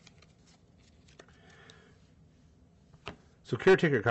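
A playing card is slid and set down on a table.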